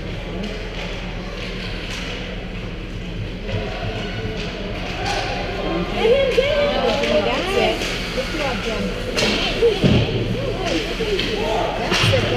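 Ice skates scrape and hiss across the ice in a large echoing rink.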